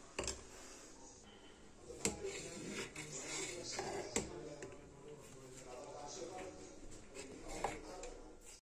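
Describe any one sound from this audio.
Liquid sloshes and bubbles as a ladle stirs it.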